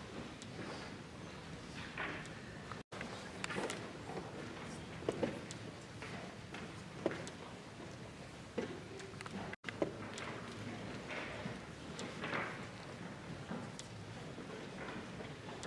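Quiet voices murmur in a large, echoing hall.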